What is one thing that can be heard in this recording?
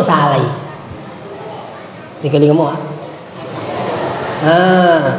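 A man preaches with animation into a microphone, his voice echoing through a large hall.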